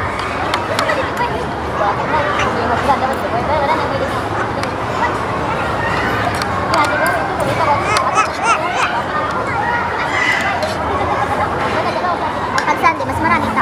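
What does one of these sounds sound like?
A young girl speaks and giggles close by.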